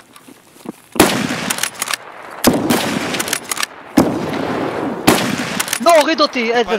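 Gunshots ring out loudly with echoing tails.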